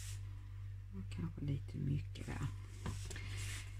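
A hand taps and pats paper on a table.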